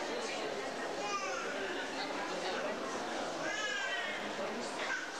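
A young child calls out in a high voice nearby.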